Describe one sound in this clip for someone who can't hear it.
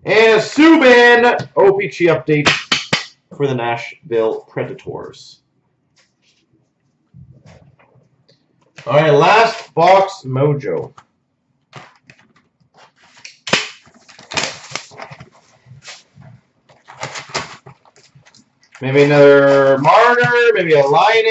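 Plastic-wrapped card packs rustle as a hand handles them.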